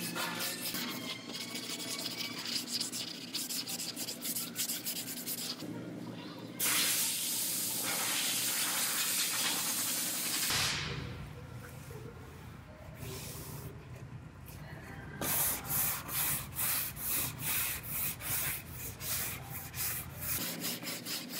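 Sandpaper rubs back and forth in quick strokes.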